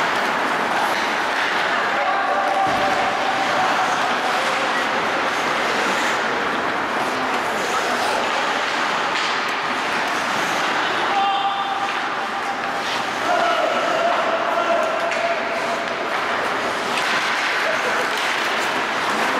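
Skates scrape and glide across the ice in a large echoing rink.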